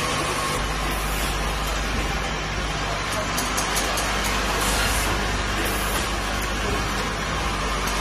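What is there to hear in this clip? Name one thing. Water splashes as liquid fills pouches.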